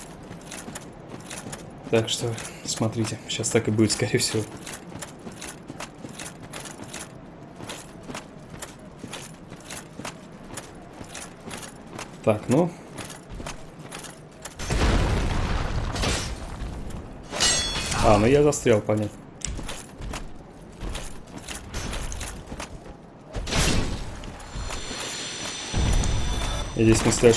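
Armoured footsteps clank steadily.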